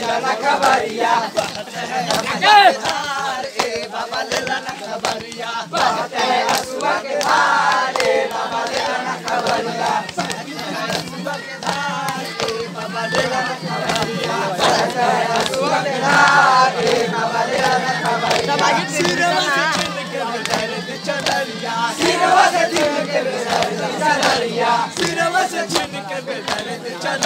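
A crowd of young men chants and shouts loudly close by.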